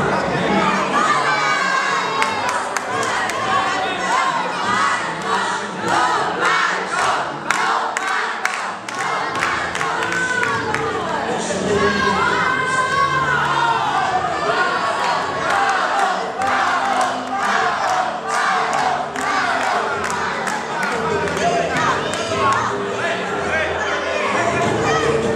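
A crowd of men and women sing and call out together in a large echoing hall.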